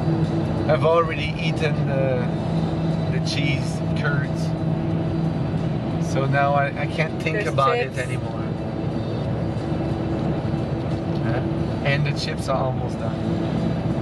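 A man talks casually close by, inside a moving vehicle.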